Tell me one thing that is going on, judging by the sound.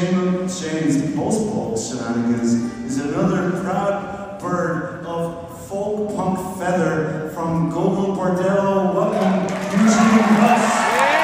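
A band plays a song in a large echoing hall.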